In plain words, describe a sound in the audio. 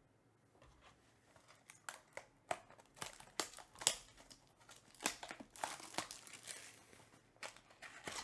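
Hands handle and open a small cardboard box.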